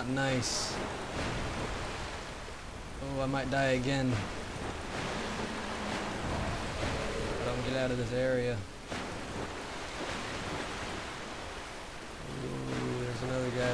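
Water splashes and churns loudly.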